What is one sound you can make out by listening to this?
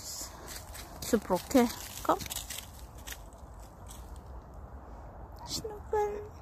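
Footsteps crunch on dry leaves outdoors.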